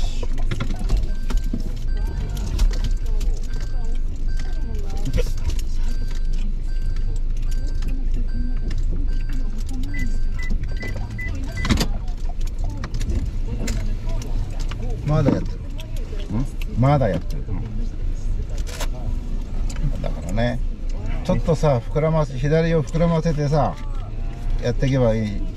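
Rain patters on a car's roof and windshield.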